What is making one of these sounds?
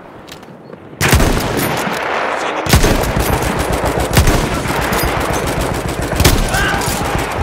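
A rifle fires loud, sharp shots.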